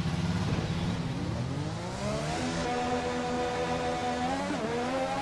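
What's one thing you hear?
A racing car engine roars and rises in pitch as the car pulls away.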